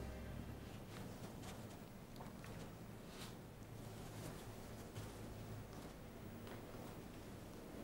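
Paper rustles as a man leafs through a stack of books.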